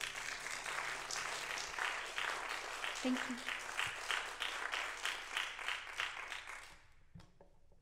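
An acoustic guitar strums rhythmically and stops.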